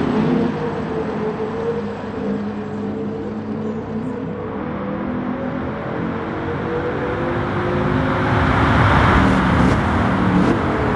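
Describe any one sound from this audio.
Sports car engines roar as cars race past.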